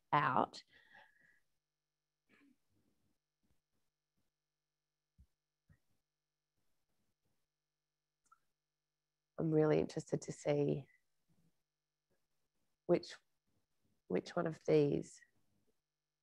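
A woman speaks into a microphone in short bursts with long pauses.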